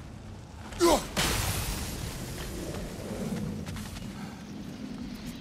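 A burst of magic explodes with a rushing, fading roar.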